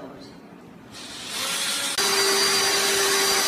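A cordless drill whirs steadily.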